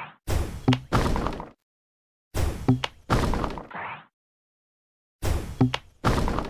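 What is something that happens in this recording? Bubbles are shot and pop with short bright bursts in a game.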